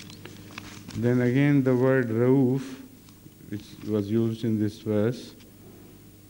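An elderly man speaks slowly and deliberately into a microphone.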